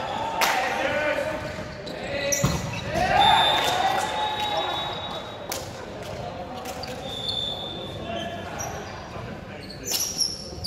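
Young men shout and call out to each other across an echoing gym.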